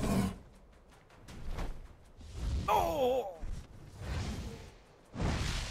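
Magic energy beams fire with crackling, whooshing blasts.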